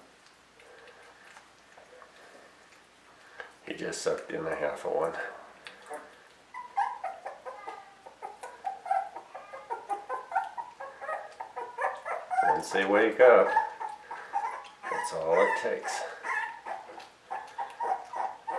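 A puppy sucks and chews on a finger.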